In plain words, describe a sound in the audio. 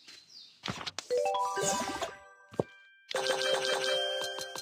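Bright chimes ring and sparkle.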